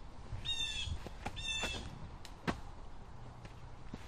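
A flying disc is flung hard with a quick whoosh.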